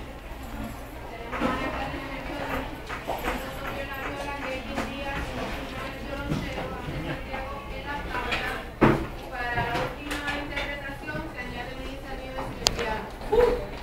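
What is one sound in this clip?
Several young people chatter nearby in a busy room.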